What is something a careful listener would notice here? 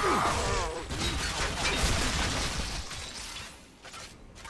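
A gun fires rapid bursts.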